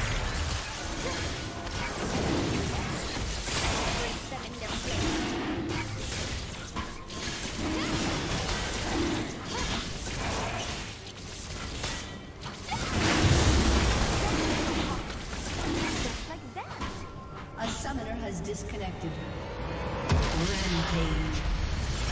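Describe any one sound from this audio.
Magic spells crackle and burst in a fast fight.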